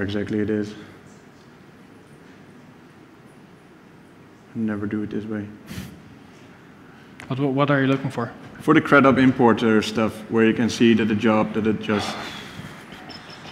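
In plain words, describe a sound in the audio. A man speaks into a microphone in a large hall, with pauses.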